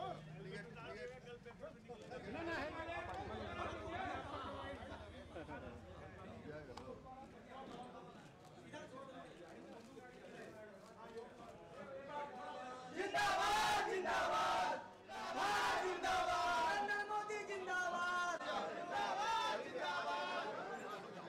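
A crowd of men chatters and murmurs close by.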